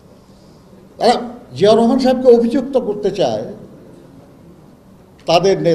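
An elderly man speaks steadily into a microphone, with short pauses.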